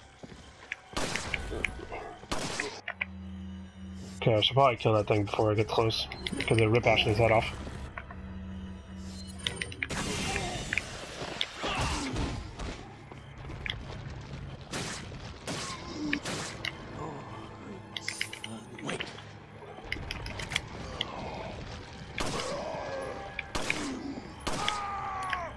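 Gunshots ring out sharply, one at a time.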